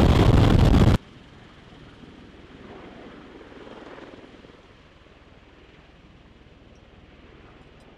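A tiltrotor aircraft flies off into the distance, its roar fading.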